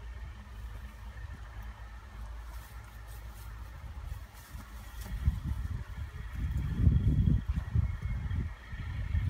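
Grass rustles and tears as a person pulls weeds by hand.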